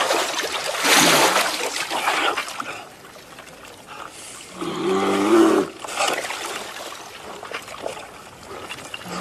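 Chunks of ice knock and scrape against each other.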